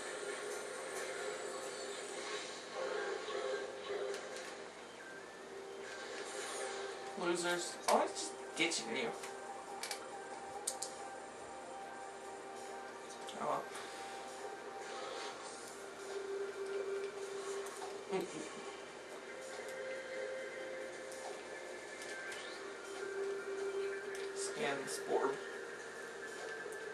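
Game music with steady droning tones plays through a television speaker.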